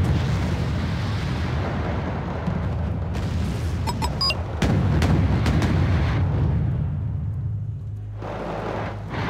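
Heavy engines rumble low and steadily.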